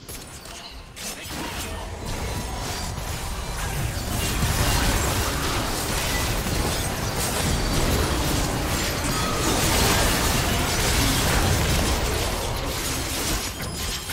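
Magic blasts and explosions crash rapidly in a chaotic fight.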